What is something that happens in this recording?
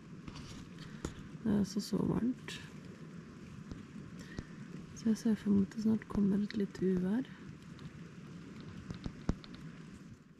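Tent fabric flaps and rustles in the wind.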